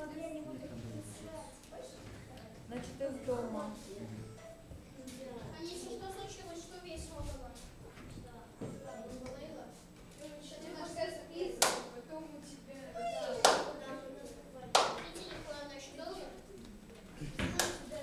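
Children talk and chatter nearby in a room.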